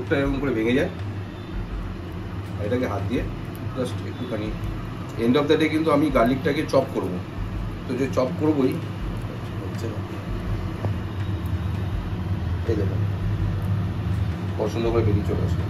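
Fingers peel papery garlic skins with a soft crackle.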